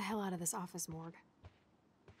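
A young woman speaks briefly with annoyance.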